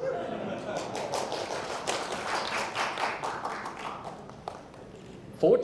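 A crowd chatters and laughs in a large room.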